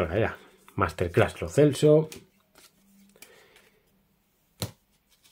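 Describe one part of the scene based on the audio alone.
Trading cards rustle and flick as hands sort through them.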